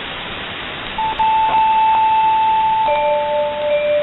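Steady whistling tones sound through the radio static.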